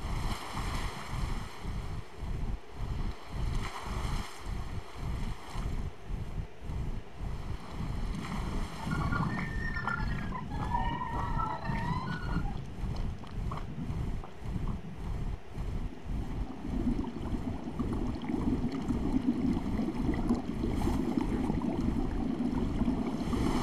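Wind rushes past in a low, steady roar.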